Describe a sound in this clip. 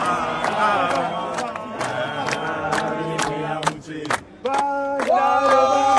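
Men clap their hands in rhythm.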